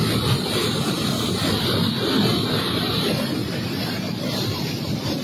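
A muddy flood torrent roars, churning debris and boulders along with a deep rumble.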